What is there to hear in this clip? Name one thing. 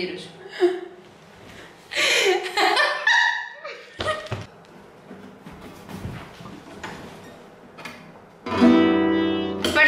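Two young women laugh.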